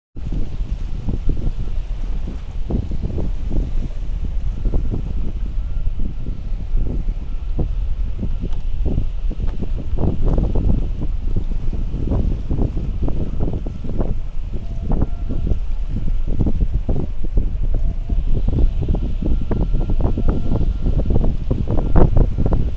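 Waves slosh against the platform below.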